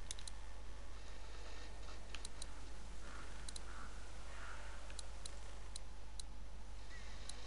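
Metal switches click sharply, one after another.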